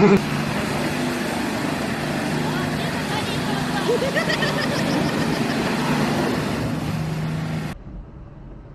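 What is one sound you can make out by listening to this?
A heavy truck engine rumbles and idles.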